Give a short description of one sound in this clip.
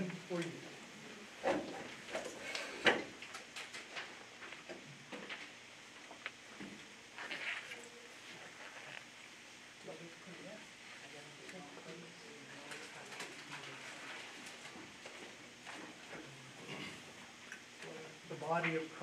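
Men and women speak quietly in a room.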